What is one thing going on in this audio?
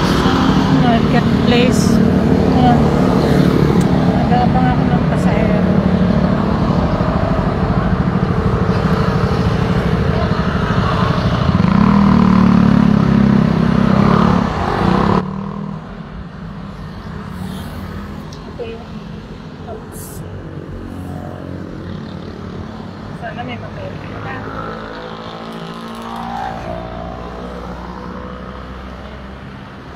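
A middle-aged woman talks close up, speaking calmly.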